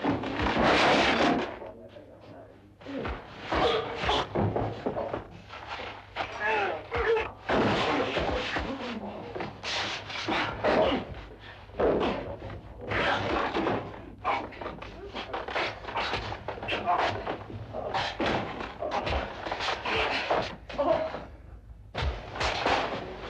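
Punches thud as men fight.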